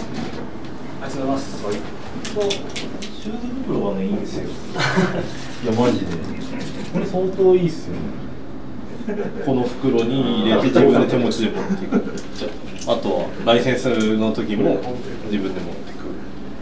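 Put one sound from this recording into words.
A middle-aged man talks casually nearby.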